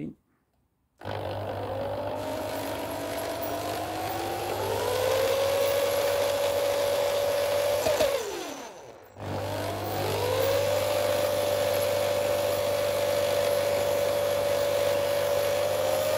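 An electric drill whirs, spinning up to a steady high hum, briefly slowing and then speeding up again.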